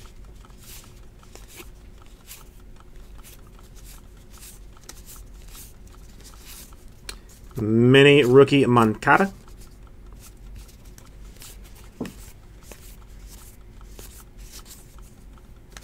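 Cards shuffle and flick softly against each other in close hands.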